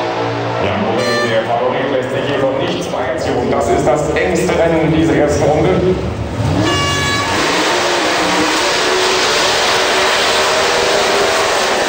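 A racing engine revs hard and loud.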